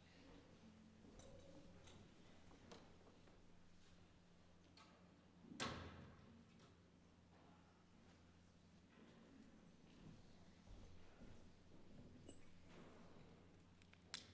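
A man speaks slowly and calmly in a large echoing hall, heard from a distance.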